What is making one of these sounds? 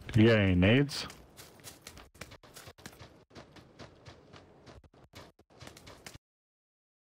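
Footsteps crunch quickly over grass and rock.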